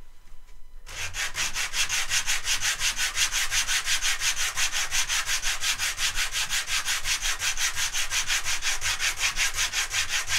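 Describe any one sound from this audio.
A piece of wood scrapes back and forth on sandpaper in quick, steady strokes.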